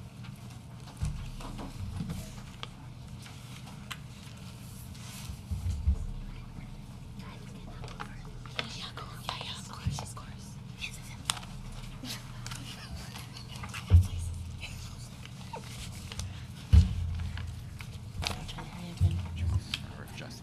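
Low thumps knock against a table near a microphone.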